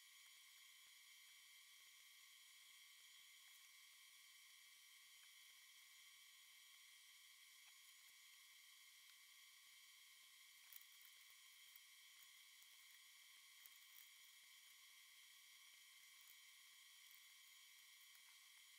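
Plastic and metal parts click and knock as hands handle an open computer case.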